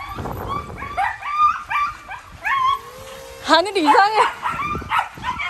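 Dogs yelp and whine excitedly.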